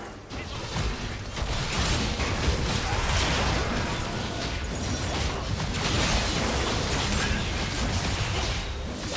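Magic spells crackle and boom in a hectic fantasy battle.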